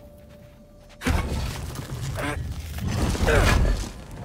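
A heavy stone lid grinds and scrapes as it slides open.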